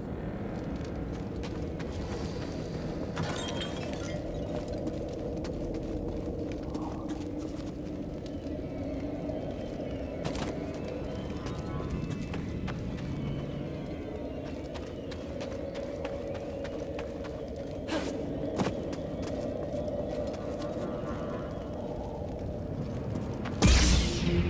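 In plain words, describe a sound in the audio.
Footsteps run and climb over stone.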